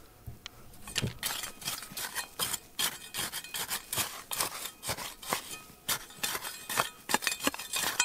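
Loose dirt and pebbles trickle and patter onto the ground.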